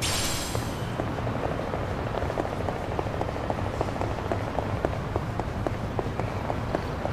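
Quick footsteps run on hard pavement.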